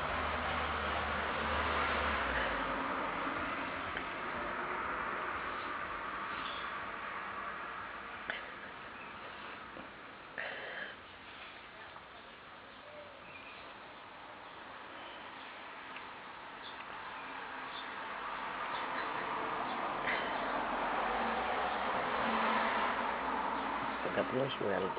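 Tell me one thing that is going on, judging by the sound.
Claws scrape and tap lightly on a hard floor.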